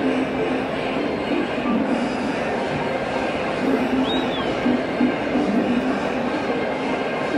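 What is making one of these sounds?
A large crowd of football fans chants in a large open stadium.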